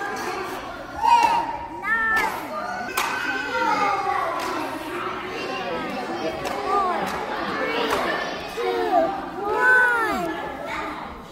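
A young girl speaks in a high voice close by.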